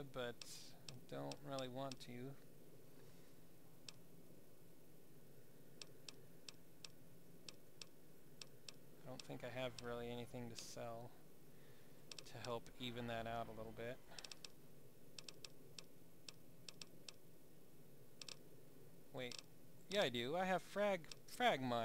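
Short soft clicks tick as a menu list scrolls.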